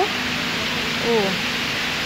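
Water pours down steadily nearby.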